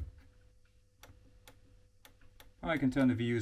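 Buttons click a few times.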